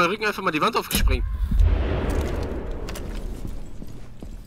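A rifle fires a burst of gunshots.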